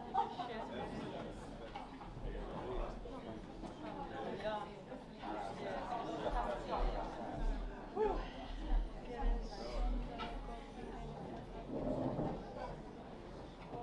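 A woman speaks calmly into a microphone, heard through loudspeakers in a hall.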